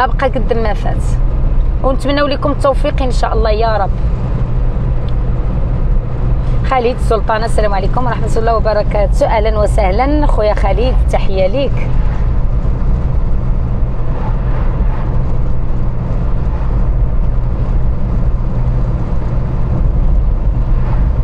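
A car engine hums steadily with tyres rumbling on the road.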